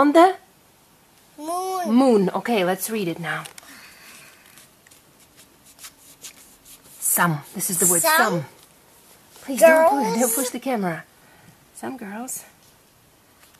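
A young child reads aloud slowly, close by.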